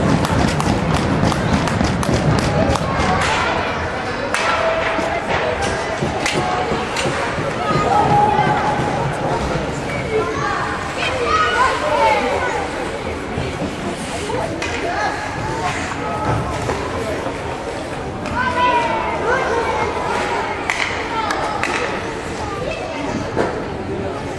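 Hockey sticks clack against the ice and the puck.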